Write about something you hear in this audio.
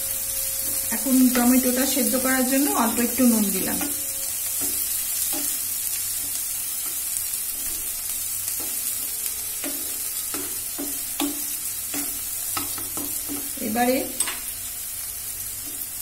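A wooden spatula scrapes and stirs food in a pan.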